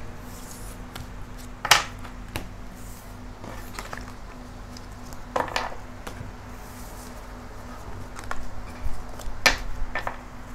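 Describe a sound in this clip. Cards slap and shuffle on a table.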